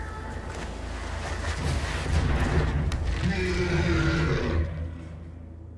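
A card game's sound effect swells with a shimmering rush and then stops.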